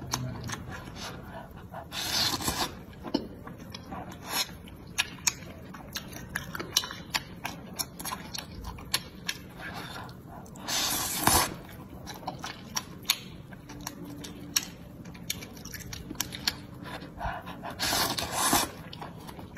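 A young woman chews food wetly, close up.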